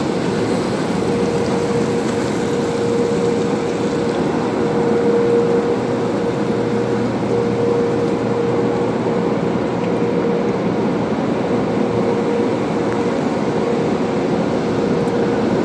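Water sprays and streams over a car's windshield.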